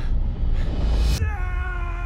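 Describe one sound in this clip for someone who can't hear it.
A man laughs loudly.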